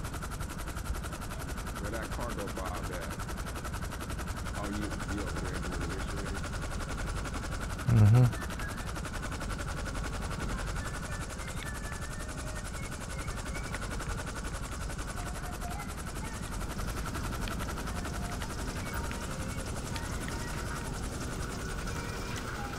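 A helicopter's rotor and engine drone steadily overhead.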